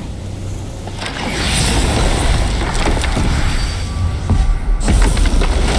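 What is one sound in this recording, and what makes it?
A loud magical rushing roar swells and fades.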